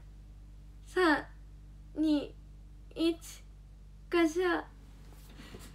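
A young girl speaks cheerfully in short high-pitched bursts, close to a microphone.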